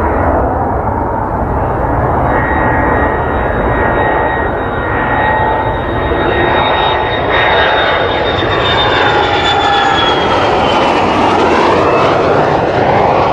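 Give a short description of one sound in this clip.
A jet engine roars loudly as a fighter plane approaches overhead, its whine falling in pitch as it passes.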